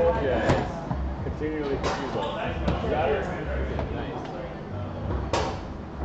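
A foosball ball cracks sharply against the rods and table walls.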